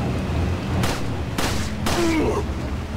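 A handgun fires several sharp shots.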